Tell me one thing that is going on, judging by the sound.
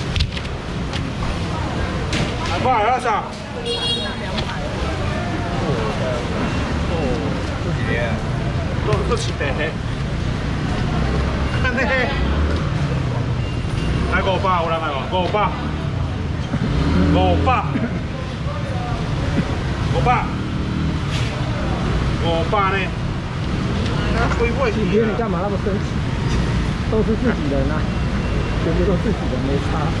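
A middle-aged man talks with animation close by.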